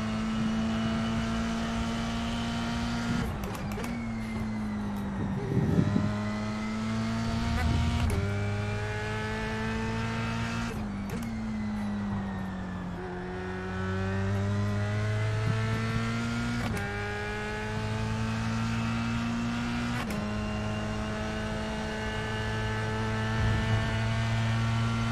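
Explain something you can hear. A racing car engine drones loudly, its pitch rising through the gears and dropping as it slows for corners.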